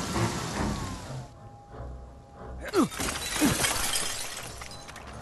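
Heavy footsteps crunch through dry undergrowth.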